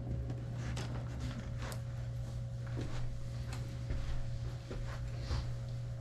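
Footsteps pad softly across a carpeted floor.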